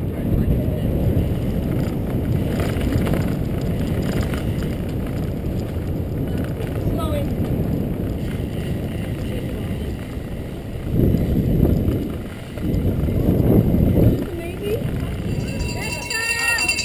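Bicycle tyres hum on pavement.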